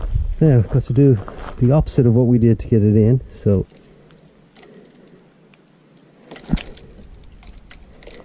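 A bicycle chain rattles and clicks as it is handled.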